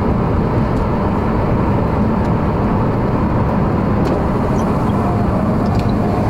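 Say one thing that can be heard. A car engine rumbles steadily from inside the car.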